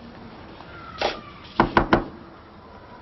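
Knuckles knock on a wooden door.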